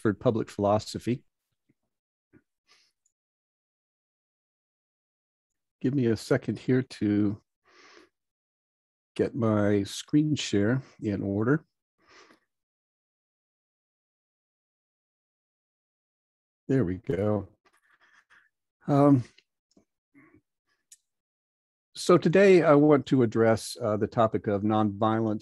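An older man speaks calmly over an online call, with pauses.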